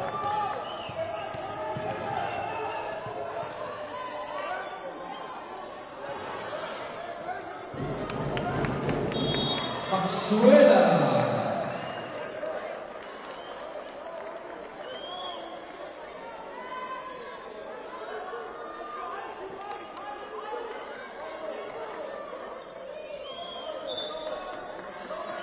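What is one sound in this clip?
A crowd in a large echoing hall cheers and murmurs.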